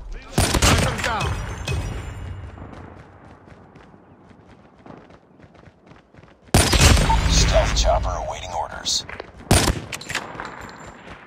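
A sniper rifle fires loud single shots that echo away.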